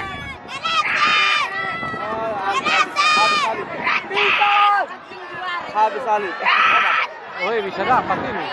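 Boys shout to one another across an open field.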